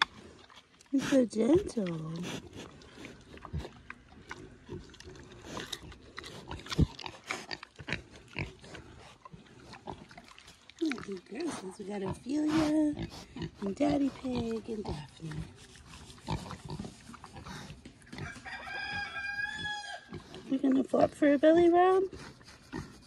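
Pigs grunt close by.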